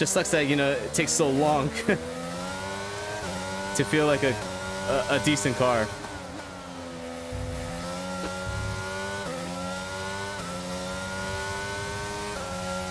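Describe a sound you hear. A racing car engine whines loudly, rising and dropping as it shifts gears.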